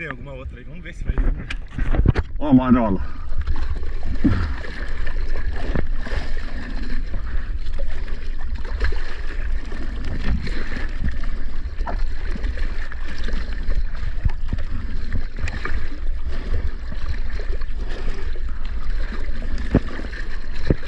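Water splashes and sloshes close by as hands paddle.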